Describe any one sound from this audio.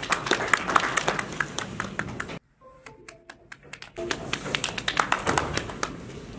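A crowd applauds with steady clapping.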